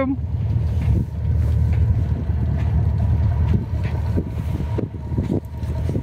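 Chunks of ice knock and scrape against a boat's hull.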